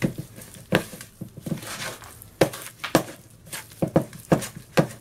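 A spoon beats batter in a bowl, knocking against its sides.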